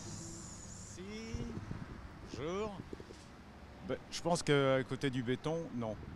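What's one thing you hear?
An elderly man speaks into a microphone outdoors.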